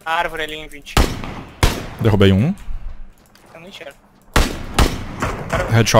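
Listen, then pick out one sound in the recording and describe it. Rifle shots crack loudly and echo away.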